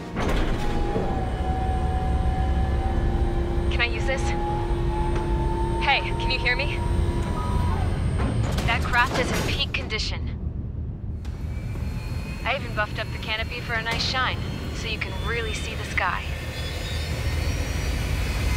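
A jet engine rumbles low and steadily.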